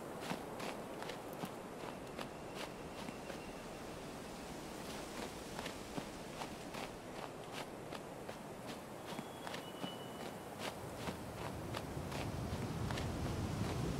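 Wind blows through trees.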